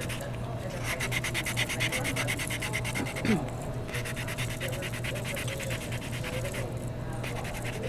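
A rubber stamp presses and taps onto a table.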